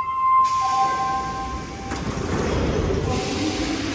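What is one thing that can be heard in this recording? Metro train doors slide shut with a thud.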